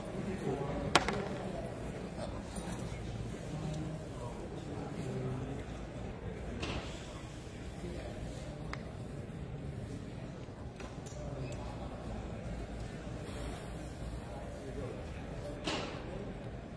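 Game pieces tap and click on a table.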